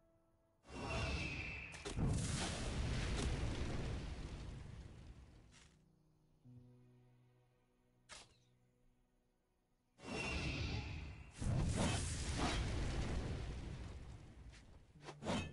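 A dragon breathes a roaring blast of fire.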